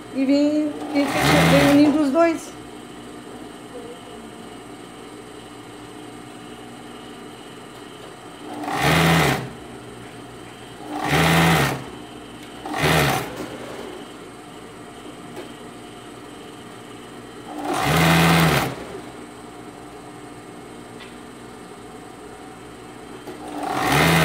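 A sewing machine runs in short, fast whirring bursts, starting and stopping again and again.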